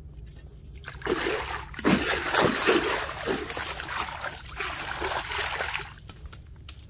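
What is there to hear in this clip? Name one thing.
Fish thrash and splash loudly in shallow water close by.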